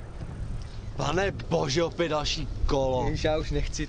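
A man speaks outdoors, close by, in a calm voice.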